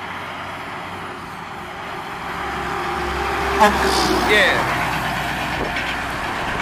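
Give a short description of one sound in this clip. A heavy truck towing a trailer rumbles past close by.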